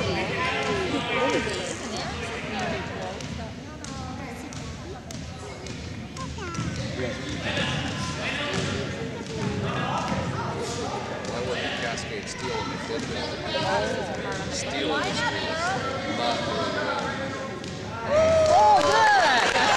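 Young girls shout and call out in a large echoing gym.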